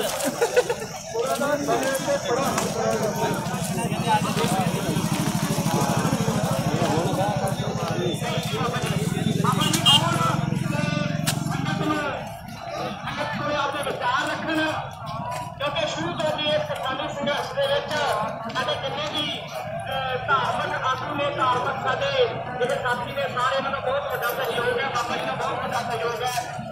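A crowd of men talk and call out outdoors.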